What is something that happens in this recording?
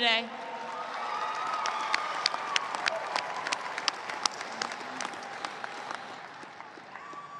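A group of women clap their hands outdoors.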